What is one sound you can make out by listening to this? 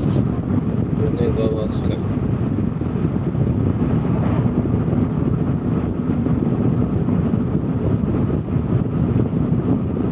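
A car's tyres rumble steadily on asphalt.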